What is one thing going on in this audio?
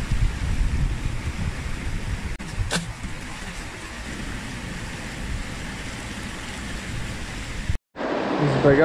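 Water splashes close by.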